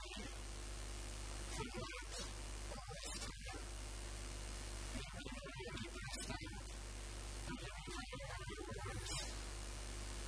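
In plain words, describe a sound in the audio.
An older man speaks calmly into a handheld microphone.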